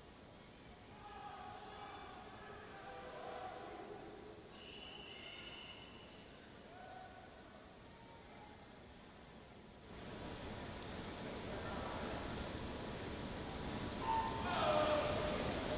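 Swimmers splash through water.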